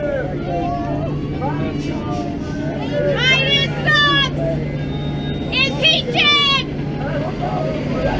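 A crowd of men and women cheer and shout nearby outdoors.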